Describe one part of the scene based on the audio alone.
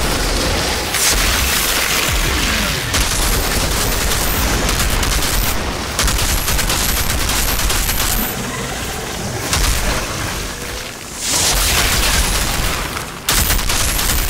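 Electric blasts crackle and hiss.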